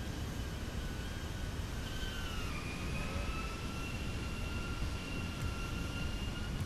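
A jet engine roars steadily with a high whine that dips slightly in pitch.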